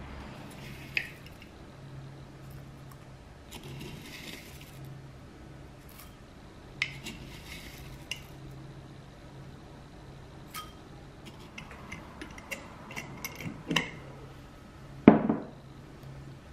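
A spoon clinks against glass.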